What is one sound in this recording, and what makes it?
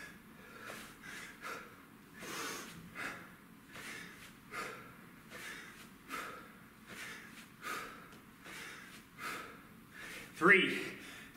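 A man breathes out hard in a steady rhythm while exercising.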